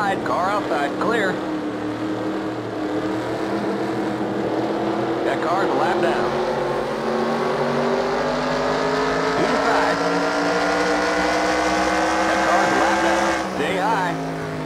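A race car engine drones steadily and slowly rises in pitch as the car speeds up.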